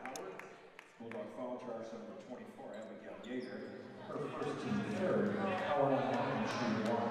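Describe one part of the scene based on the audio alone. A crowd cheers and calls out in a large echoing gym.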